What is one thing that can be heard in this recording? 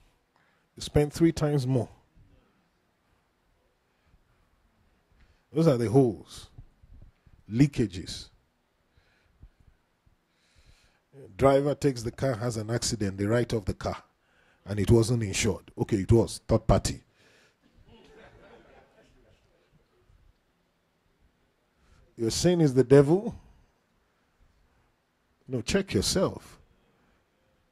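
A man preaches with animation into a microphone, in short bursts with pauses, heard through a loudspeaker in a large room.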